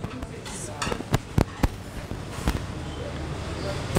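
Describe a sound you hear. Roasted meat thuds onto a wooden chopping block.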